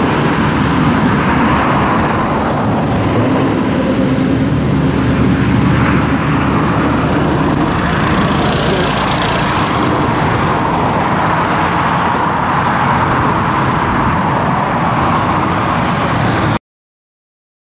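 A scooter engine hums as the scooter rides past and away.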